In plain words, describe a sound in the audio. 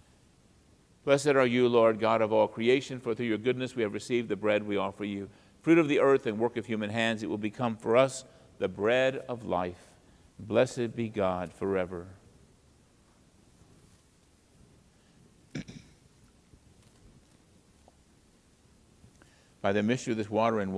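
An older man speaks slowly and solemnly through a microphone, in pauses.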